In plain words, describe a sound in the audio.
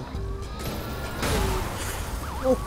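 A car crashes with a loud metallic bang.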